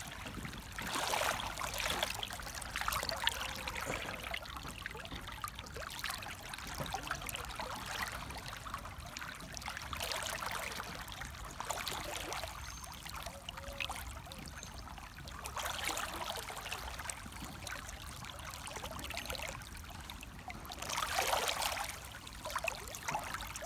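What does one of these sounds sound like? A shallow stream trickles and splashes over stones close by.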